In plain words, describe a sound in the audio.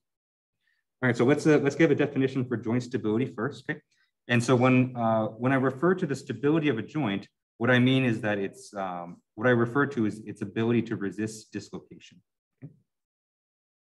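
A young man speaks calmly, heard through an online call.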